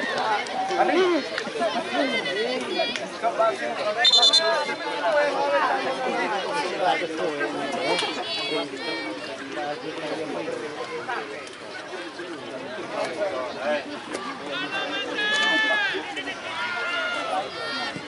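A large crowd of spectators chatters and shouts outdoors.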